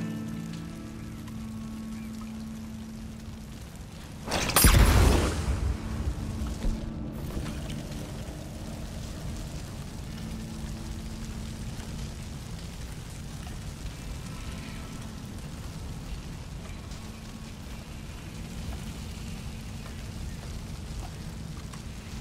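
A grass fire crackles.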